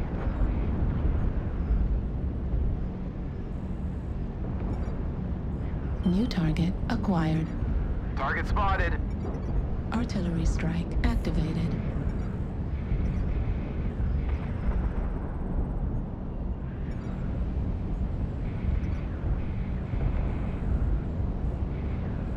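A heavy machine rumbles low and steadily throughout.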